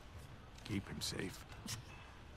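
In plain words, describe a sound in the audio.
An older man calls out pleadingly.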